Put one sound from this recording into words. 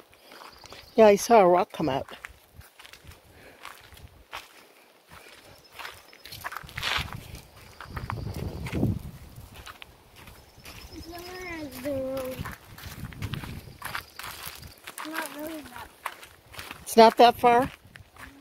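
A young child calls out in a high voice close by.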